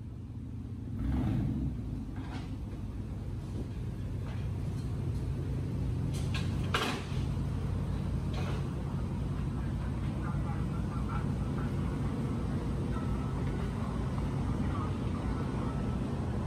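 A truck engine idles with a deep, rumbling exhaust.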